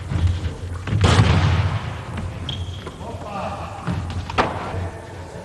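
A ball bounces on a hard floor in a large echoing hall.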